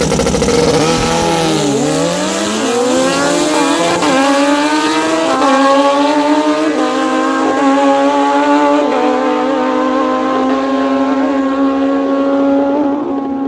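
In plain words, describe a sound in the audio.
A motorcycle engine roars away, its pitch climbing and dropping with each gear change.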